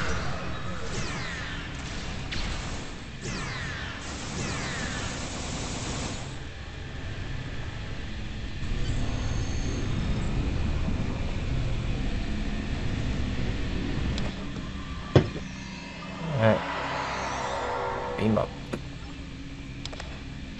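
A deep electronic hum drones steadily.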